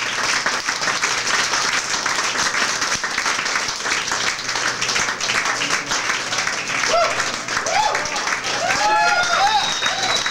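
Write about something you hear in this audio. A large crowd cheers and shouts in a big hall.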